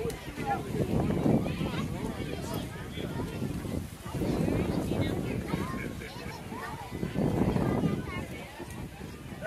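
Wind gusts roughly across the microphone outdoors.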